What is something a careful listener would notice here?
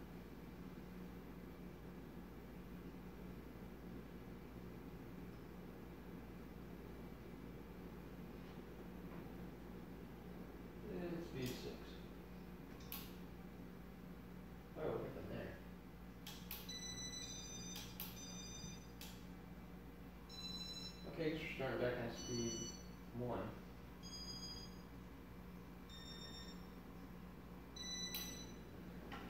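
A ceiling fan whirs and hums steadily.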